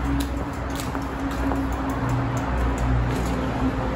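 A bicycle freewheel ticks as a bike is wheeled along.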